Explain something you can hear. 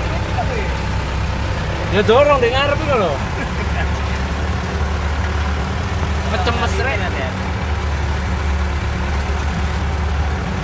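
A vehicle engine rumbles low and steady from inside the cab.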